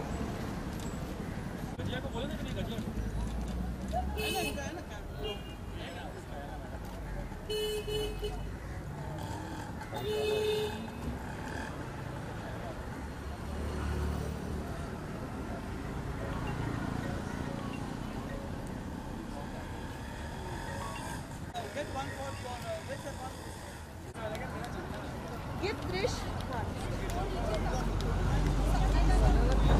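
A crowd of people chatters and calls out nearby outdoors.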